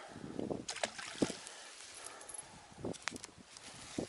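A small fish splashes into water.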